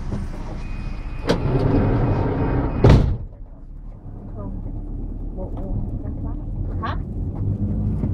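A minibus engine hums and rumbles from inside the cabin.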